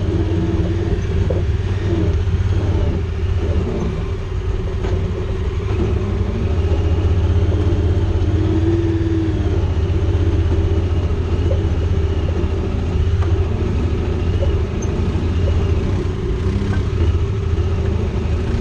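Tyres crunch over rocks and dirt.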